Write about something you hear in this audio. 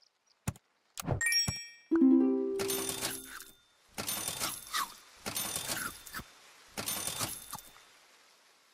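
Short game sound effects whoosh and chime in quick bursts.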